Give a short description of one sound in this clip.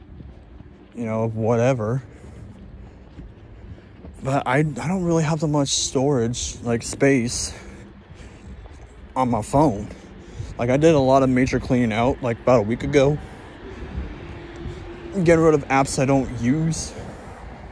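A man speaks close to a phone microphone, in a calm, low voice.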